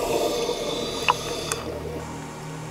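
Scuba bubbles gurgle and rush upward underwater.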